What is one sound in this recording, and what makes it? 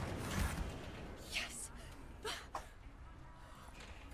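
Hands bang on a metal door.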